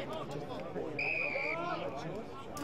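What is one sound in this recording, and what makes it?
A referee's whistle blows sharply.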